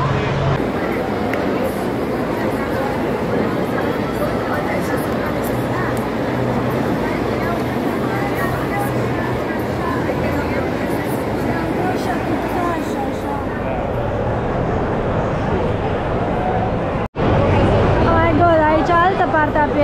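A large crowd chatters in a big, echoing hall.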